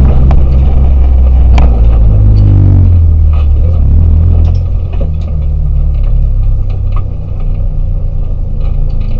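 Loose parts rattle and knock inside the car.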